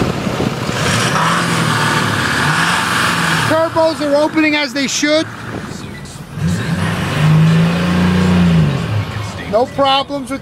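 A truck engine revs up and settles back down several times.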